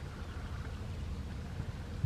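Ducklings peep softly nearby.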